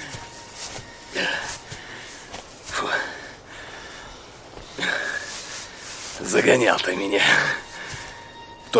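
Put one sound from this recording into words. A man speaks mockingly and laughs, close by.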